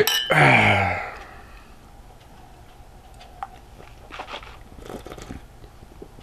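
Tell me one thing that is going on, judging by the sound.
A man sips a drink.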